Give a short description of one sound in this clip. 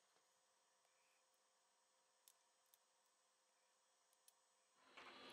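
A plastic pry tool clicks softly against a circuit board.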